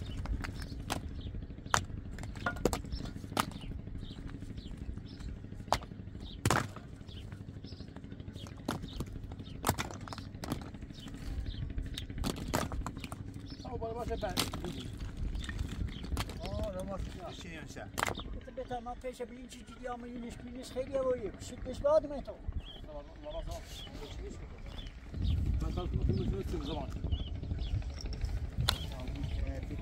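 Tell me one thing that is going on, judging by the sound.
Stones knock and clatter as men dig rocky ground by hand.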